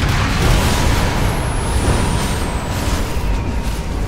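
Fiery blasts boom one after another.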